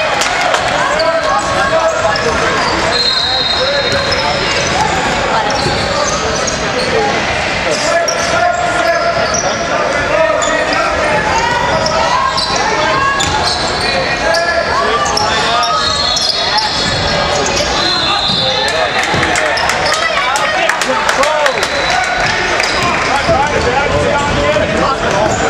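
Young men shout and call out to each other in a large echoing hall.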